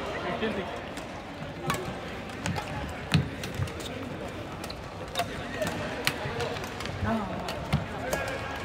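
Many people chatter and call out in the distance across a large echoing hall.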